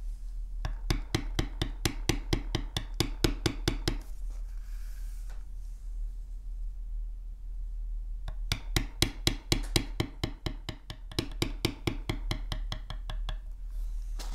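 A mallet taps a metal stamping tool into leather in quick, steady blows.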